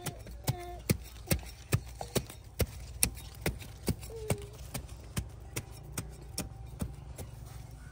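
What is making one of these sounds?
A small trowel digs and chops into dry soil with quick thuds.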